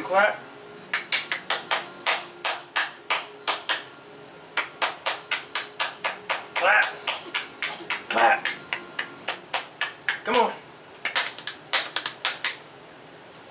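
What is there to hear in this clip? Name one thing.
A man claps his hands in a quick rhythm.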